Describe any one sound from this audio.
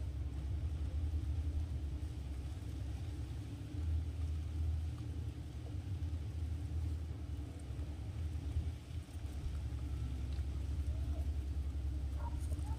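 Wind blows outdoors with a steady low rumble.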